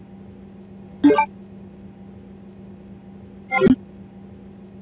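A short electronic menu chime sounds twice.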